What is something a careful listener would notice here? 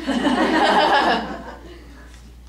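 A woman laughs into a microphone.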